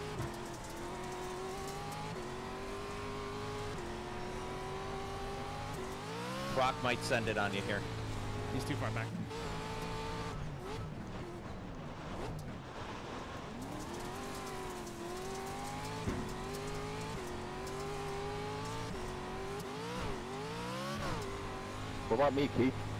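A racing car engine whines and revs up and down through gear changes.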